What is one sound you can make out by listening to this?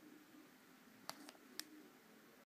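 A music player clicks back into a plastic dock.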